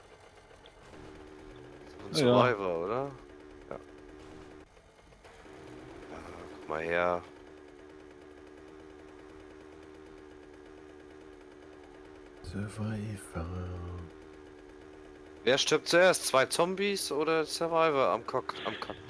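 A small motorbike engine hums steadily and revs up now and then.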